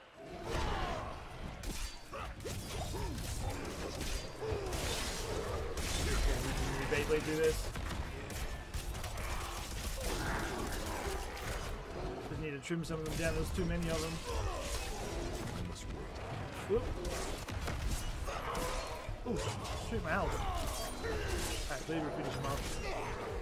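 Game combat sounds of blows and spells clash throughout.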